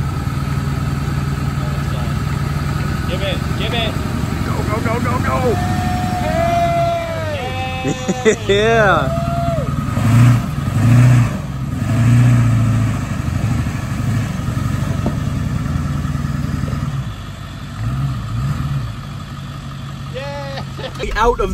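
Tyres spin and churn through mud and dirt.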